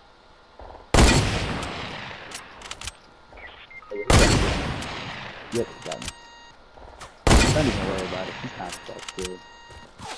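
A rifle fires loud single shots that ring out and fade.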